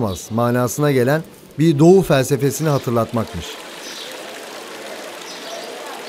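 Water trickles gently in a fountain.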